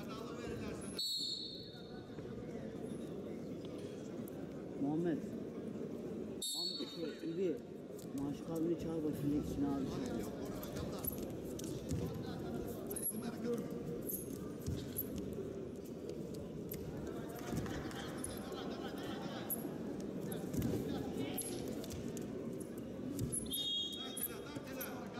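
A referee blows short whistle blasts.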